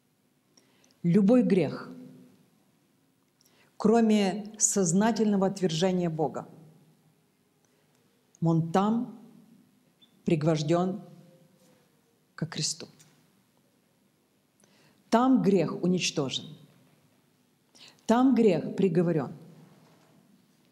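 A middle-aged woman speaks calmly in short bursts, close by.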